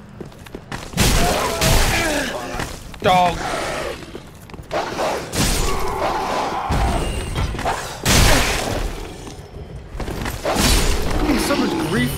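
Heavy weapons strike and clash in loud sudden blows.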